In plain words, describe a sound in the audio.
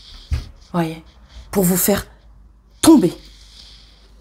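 A woman speaks close by, calmly.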